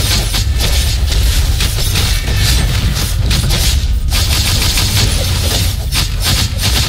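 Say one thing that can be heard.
Sword slashes and impacts clash rapidly in a game battle.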